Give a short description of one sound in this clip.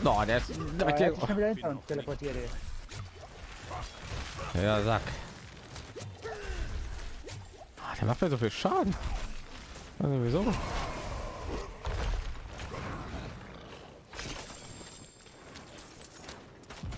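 Weapon blows and spell effects crash during a fight.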